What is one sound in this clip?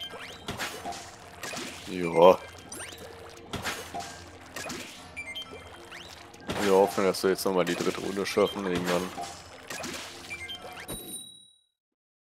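Game sound effects splash and pop.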